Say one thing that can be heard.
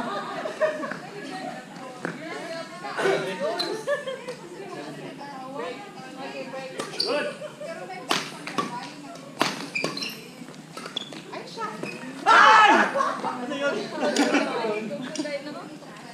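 Young women talk and call out across an echoing hall.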